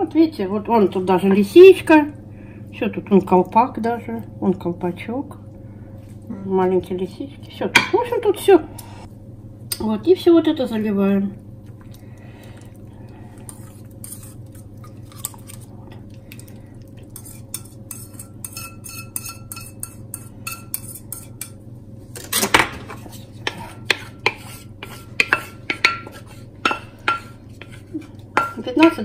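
A wooden spoon scrapes and taps against a glass dish.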